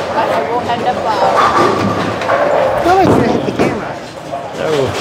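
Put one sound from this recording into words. A bowling ball rumbles down a lane.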